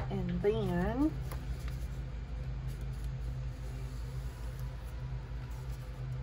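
Paper rustles and crinkles as it is folded.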